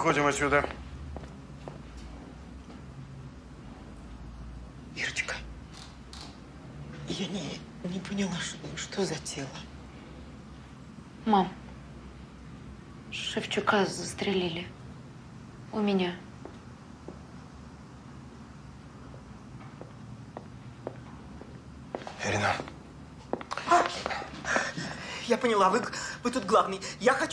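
A middle-aged woman speaks tensely and urgently, close by.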